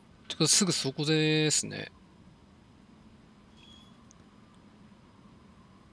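A small key jingles on its ring.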